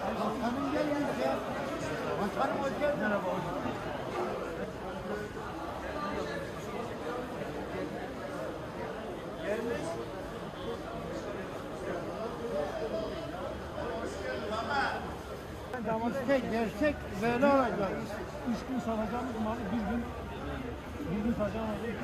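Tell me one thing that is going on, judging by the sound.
Several men talk in a lively, busy crowd nearby.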